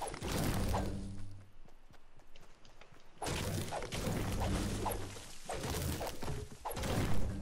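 A pickaxe strikes wood with repeated hollow knocks.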